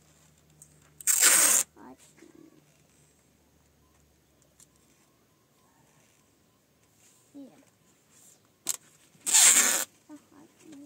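Sticky tape is pulled off a roll with a loud rasping rip.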